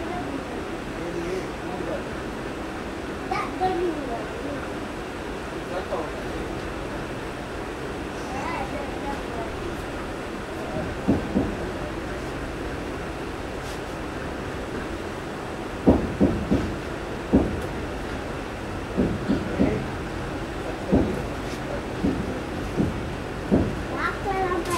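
A passing train rumbles steadily along the track close by.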